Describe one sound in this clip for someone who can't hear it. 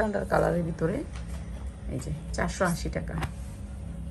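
Fabric rustles as a garment is laid down on top of another.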